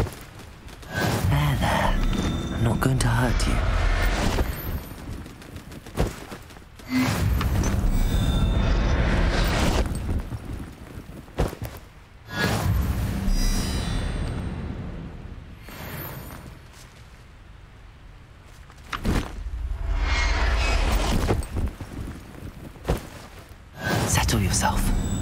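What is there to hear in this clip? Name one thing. A bright magical whoosh rings out several times.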